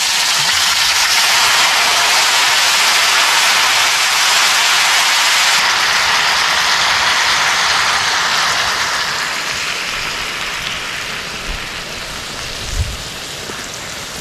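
Liquid is poured into a sizzling pot.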